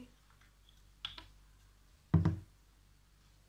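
Small plastic objects knock down onto a wooden table.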